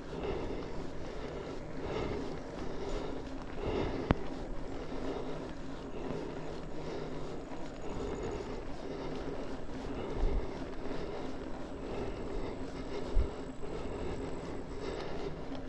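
Bicycle tyres crunch and rumble steadily over a gravel track.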